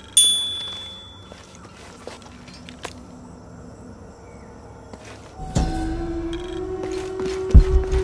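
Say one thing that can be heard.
Footsteps scuff on a stone floor.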